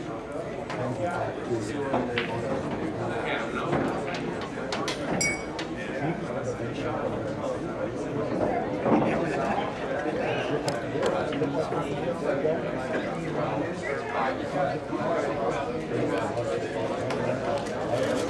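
A crowd of people chatters steadily in a busy, echoing room.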